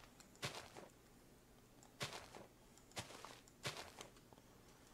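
Short crunching knocks sound as blocks are broken, one after another.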